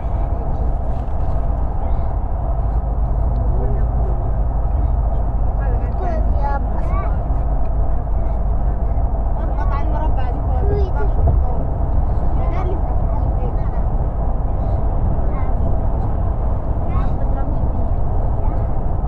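A car drives along a highway with a steady low rumble of road noise.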